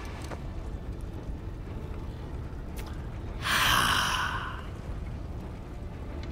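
A man speaks in a deep, gruff voice, close by.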